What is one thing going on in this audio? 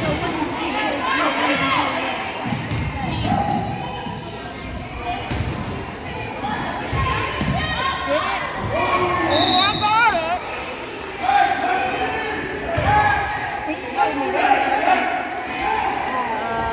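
Young players shout and call out to each other in a large echoing gym.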